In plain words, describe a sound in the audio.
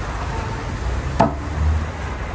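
A metal lid clanks against a pot.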